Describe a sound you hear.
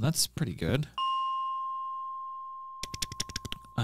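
A game chime rings as a menu opens.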